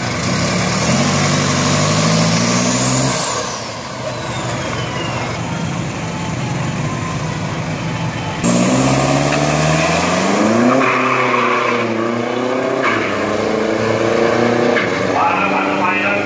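An engine revs loudly and roars up through the gears as a vehicle pulls away.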